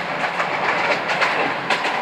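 A vehicle drives along with a steady, noisy rumble.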